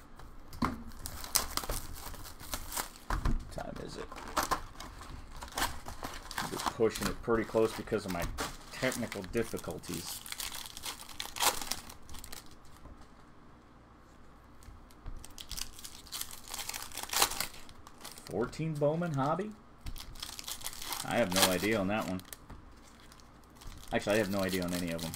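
Plastic card wrappers crinkle and tear as packs are ripped open.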